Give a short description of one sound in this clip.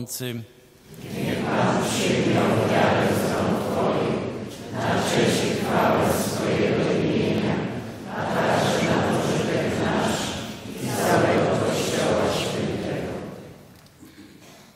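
A group of boys recites together in unison.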